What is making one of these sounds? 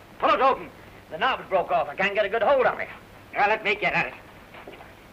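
A man speaks sharply and loudly, close by.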